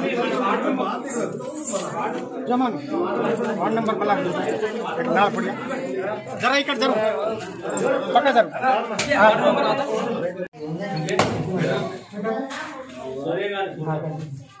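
A crowd of men and women talk and murmur close by outdoors.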